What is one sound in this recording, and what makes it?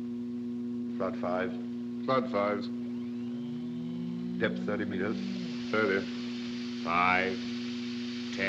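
A man speaks in short, calm bursts.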